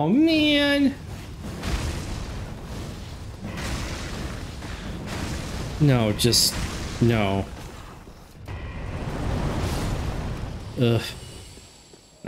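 A fiery blast roars and rumbles.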